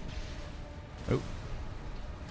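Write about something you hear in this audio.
A deep explosion booms.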